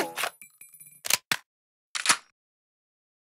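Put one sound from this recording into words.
A rifle's magazine clicks out and snaps back in during a reload.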